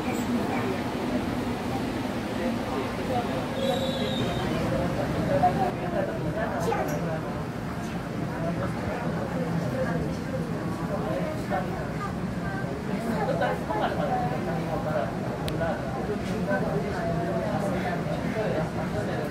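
Passengers murmur and talk quietly nearby.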